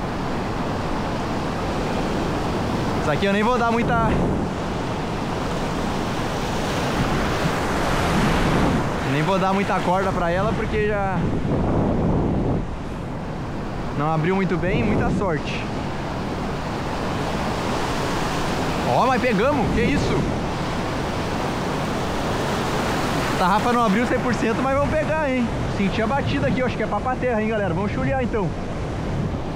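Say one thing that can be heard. Water churns and splashes behind a moving boat.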